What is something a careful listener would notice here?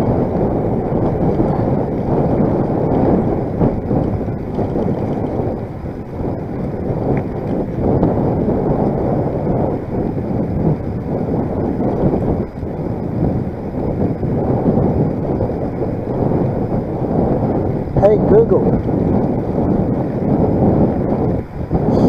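Wind buffets the microphone steadily.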